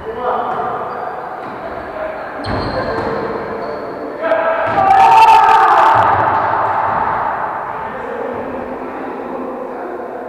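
Men call out to each other in an echoing sports hall.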